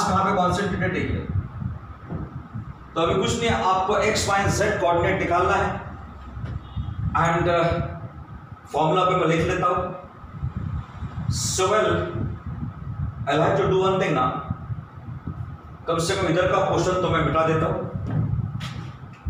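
A middle-aged man lectures in short bursts of speech.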